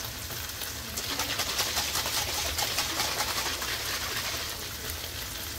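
Sauce hisses loudly as it hits a hot pan.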